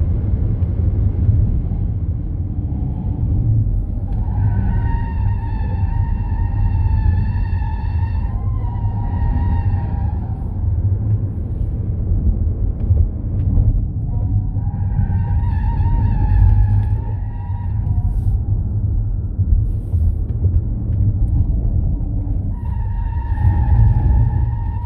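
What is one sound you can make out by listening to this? Wind rumbles loudly against the car.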